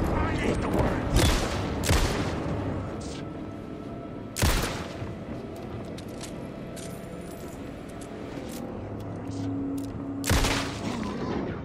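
Pistol shots ring out loudly with a short echo.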